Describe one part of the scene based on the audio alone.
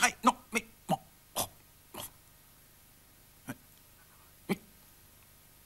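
A duck quacks in short, sharp bursts.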